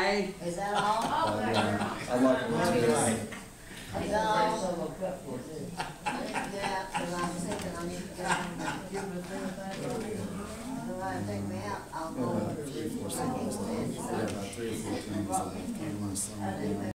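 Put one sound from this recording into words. An older man talks casually through a microphone.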